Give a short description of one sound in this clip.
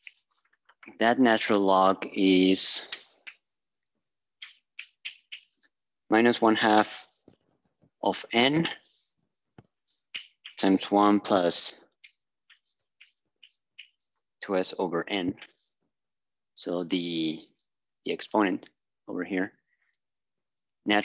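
A man speaks calmly, as if lecturing, close by.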